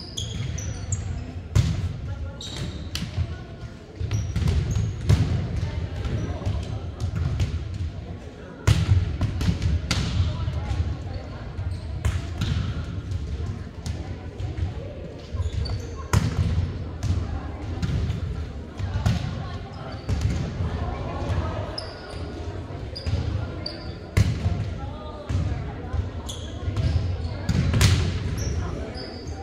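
A crowd of girls and women chatters and calls out in a large echoing hall.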